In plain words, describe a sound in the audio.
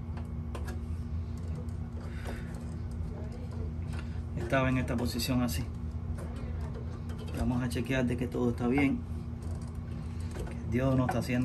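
Small metal parts click and rattle as hands pull on wire connectors.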